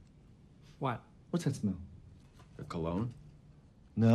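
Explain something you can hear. A man speaks in short, quick phrases nearby.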